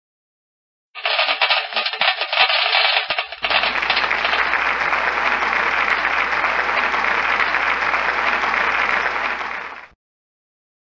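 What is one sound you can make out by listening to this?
A game plays a celebratory fanfare for a win.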